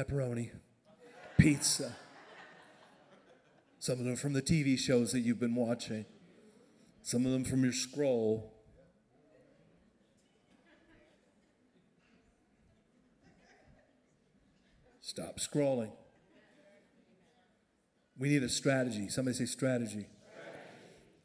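A man speaks with animation into a microphone over loudspeakers in a large echoing hall, pausing often.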